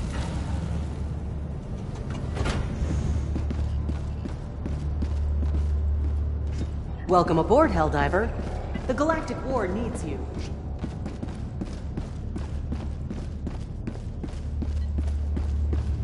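Heavy armored footsteps clank steadily on a metal floor.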